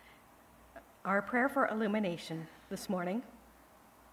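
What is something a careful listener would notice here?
A middle-aged woman speaks calmly into a microphone in a large echoing room.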